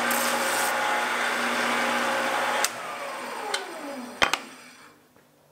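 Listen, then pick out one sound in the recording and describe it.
A lathe spins with a loud hum and then winds down.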